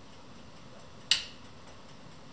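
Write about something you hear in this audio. A plug clicks sharply into a socket nearby.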